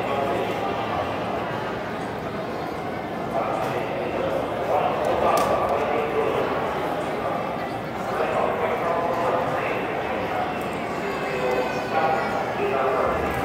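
A large crowd of adults and children chatters throughout a large echoing hall.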